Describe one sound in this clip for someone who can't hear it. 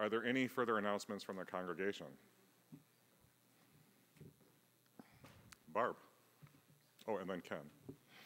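A man speaks calmly into a microphone in an echoing hall, with pauses.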